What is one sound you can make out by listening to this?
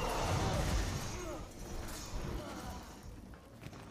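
A body thuds heavily onto a metal floor.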